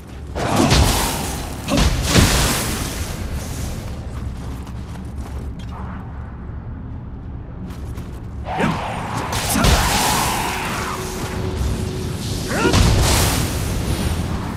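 Swords clash and slash in quick bursts.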